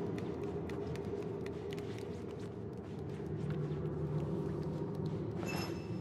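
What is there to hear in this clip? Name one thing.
Light footsteps patter on a hard floor.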